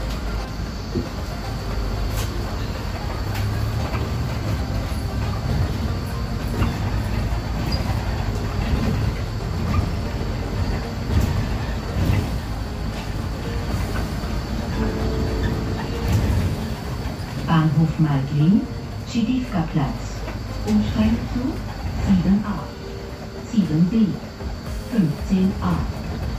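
The bus interior rattles and clicks softly.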